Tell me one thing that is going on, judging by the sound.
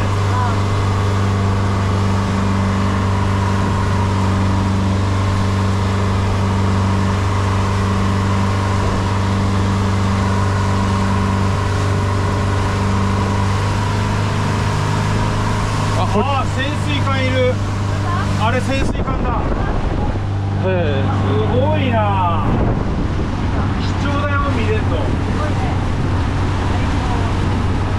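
Wind buffets loudly outdoors.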